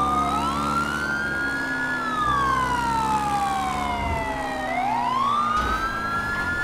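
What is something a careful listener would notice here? A motorcycle engine revs up and down as the bike rides along a road.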